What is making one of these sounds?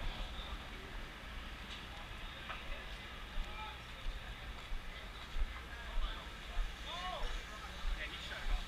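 Men talk quietly a short way off, outdoors.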